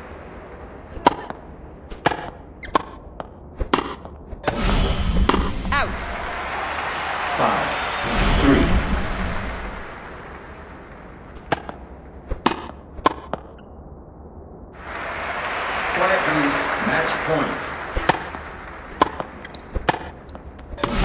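Tennis rackets strike a ball with sharp pops.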